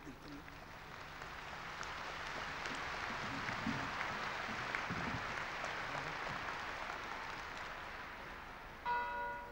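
A large crowd applauds outdoors, swelling and then fading.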